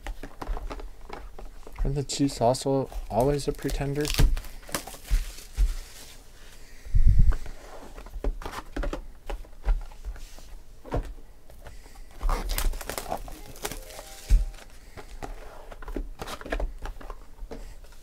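Foil card wrappers crinkle and rustle as hands tear open packs.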